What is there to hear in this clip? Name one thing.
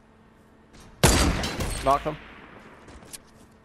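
A rifle fires a single loud shot with a ringing echo.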